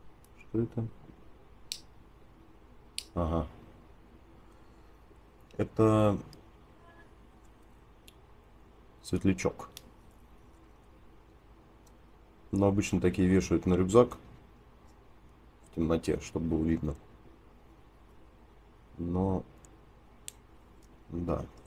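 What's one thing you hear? Small metal parts click and tick between fingers.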